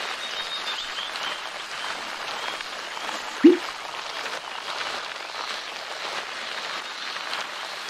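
A bike trainer whirs steadily under pedalling.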